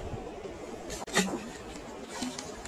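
A fish splashes into shallow water.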